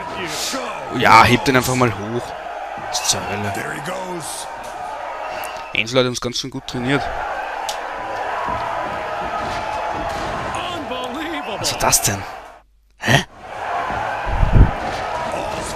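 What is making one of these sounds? Bodies slam heavily onto a wrestling ring's mat.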